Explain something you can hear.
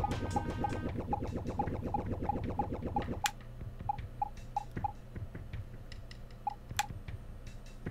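Short high electronic blips sound again and again from a video game.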